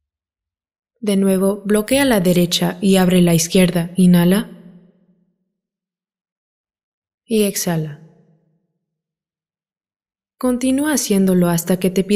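A woman speaks calmly and slowly, close to a microphone.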